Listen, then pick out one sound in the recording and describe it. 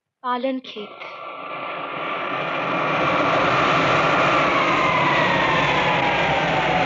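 A jet engine roars steadily and grows louder.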